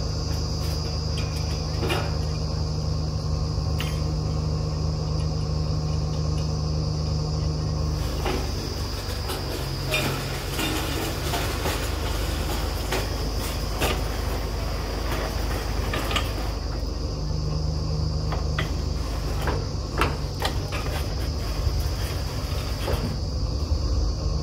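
Metal parts clank and knock on a drilling rig.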